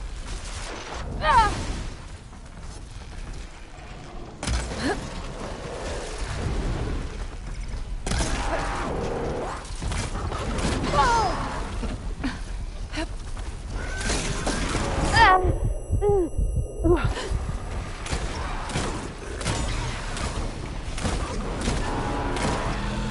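A mechanical beast screeches and growls.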